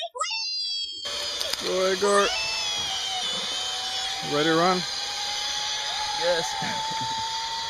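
A zipline pulley whirs steadily along a cable.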